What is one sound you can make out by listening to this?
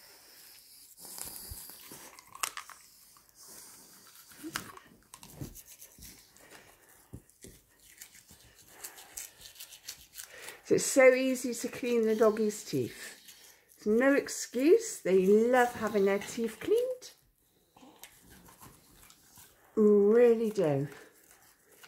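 A toothbrush scrubs softly against a dog's teeth.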